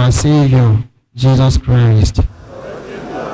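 A man chants into a microphone in an echoing hall.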